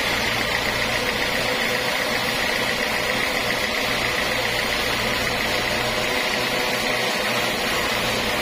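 A sawmill band saw cuts through a teak log with a steady whine.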